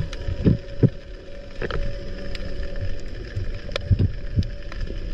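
Water rumbles and swirls in muffled bursts underwater.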